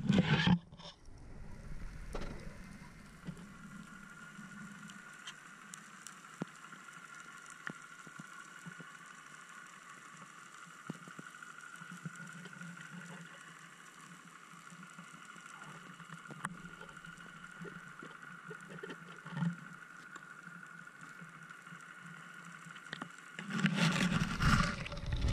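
Water hisses and crackles steadily all around, heard from underwater.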